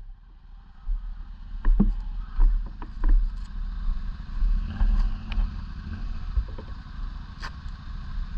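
A motorcycle engine idles close by with a low rumble.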